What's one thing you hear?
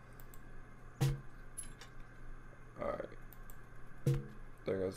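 A soft electronic click sounds a few times.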